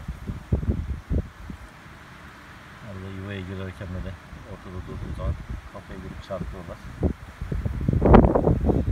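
Bees buzz close by at a hive entrance.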